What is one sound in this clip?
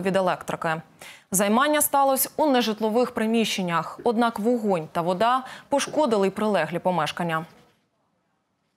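A young woman speaks calmly and clearly into a microphone, reading out.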